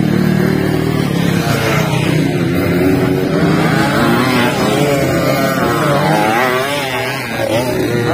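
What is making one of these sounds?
Dirt bike engines rev and buzz outdoors.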